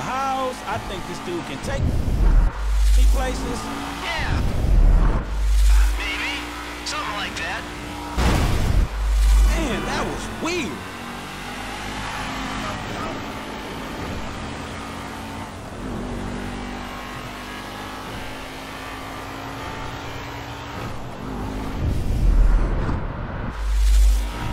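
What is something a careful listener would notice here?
A car engine roars and revs as the car speeds along.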